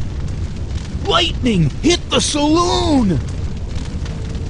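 A man shouts in alarm.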